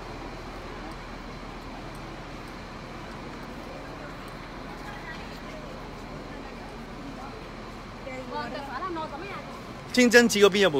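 Footsteps shuffle on pavement.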